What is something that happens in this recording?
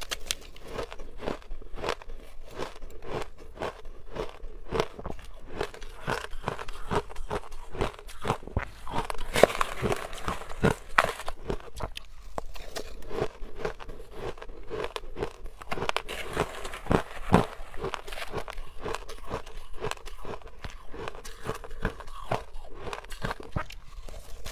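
A young woman crunches shaved ice close to the microphone.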